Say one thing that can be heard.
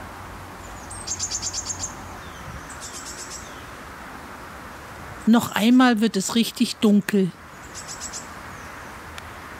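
A small bird calls in quick, high trills from the treetops.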